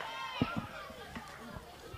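A hockey stick smacks a ball with a sharp crack.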